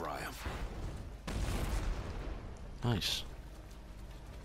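A fiery explosion bursts with a loud roar.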